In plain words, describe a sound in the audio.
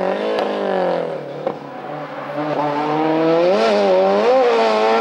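A rally car engine revs hard, drops as the car slows, then roars again as it pulls away.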